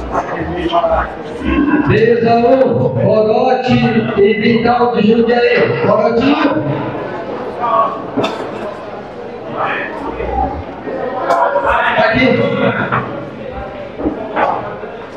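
A crowd of men and women murmurs and talks nearby.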